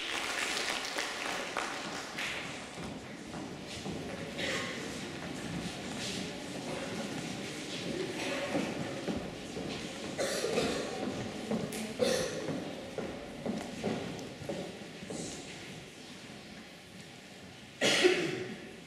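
A crowd of children murmurs in a large echoing hall.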